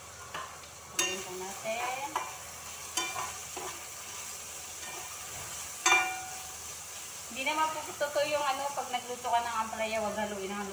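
A spatula scrapes and knocks against a pan.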